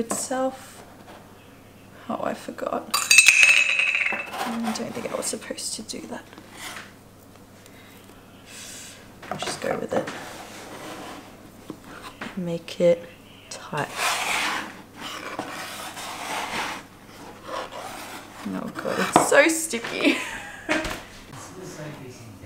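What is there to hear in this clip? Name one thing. A metal bench scraper scrapes across a wooden board under bread dough.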